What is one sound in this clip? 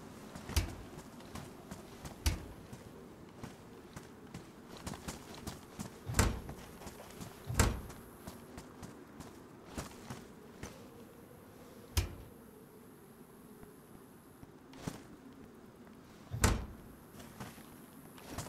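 Footsteps crunch softly on dry grass.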